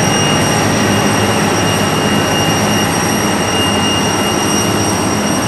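A jet engine whines and roars steadily nearby.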